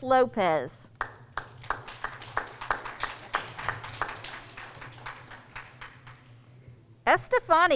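A person claps their hands.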